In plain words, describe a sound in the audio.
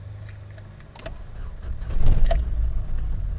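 A car engine cranks and starts.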